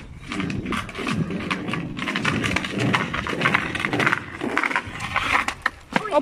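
Small plastic wheels of a scooter rattle over paving.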